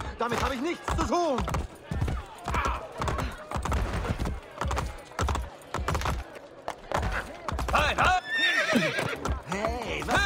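A horse's hooves clatter on stone at a gallop.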